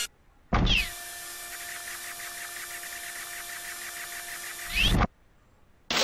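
A laser drill hums steadily.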